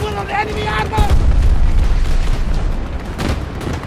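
A heavy explosion booms and rumbles.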